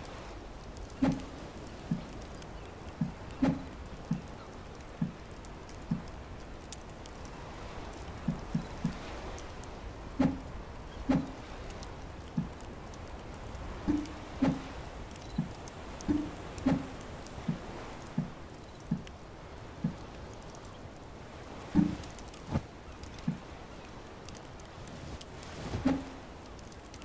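Short soft blips sound again and again as menu options change.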